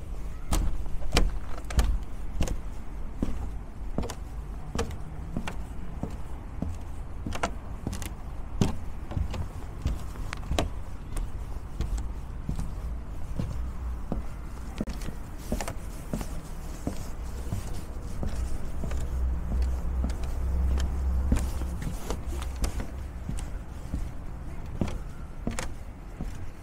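Footsteps thud steadily on wooden steps.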